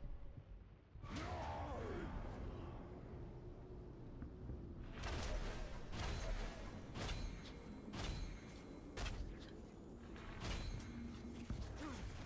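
Swords clash and strike in a fight, with loud impacts.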